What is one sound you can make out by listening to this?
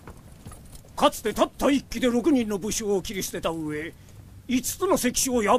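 A man speaks in a firm, forceful voice.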